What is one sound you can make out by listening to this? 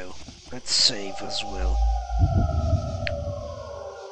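A game menu opens with a soft chime.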